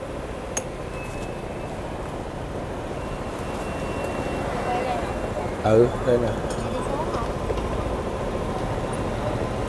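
A motor scooter idles nearby.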